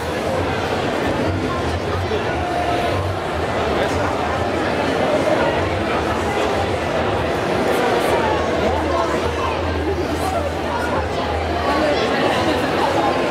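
A crowd of young people chatters all around in a large echoing hall.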